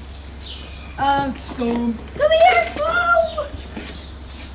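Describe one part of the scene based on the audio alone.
A young girl speaks nearby.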